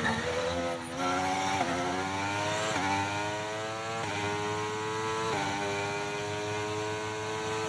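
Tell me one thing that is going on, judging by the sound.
A racing car engine screams, rising in pitch through each gear and dropping sharply at every gear change.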